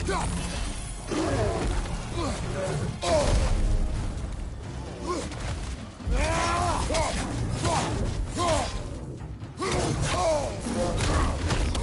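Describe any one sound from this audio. A large bear growls and roars up close.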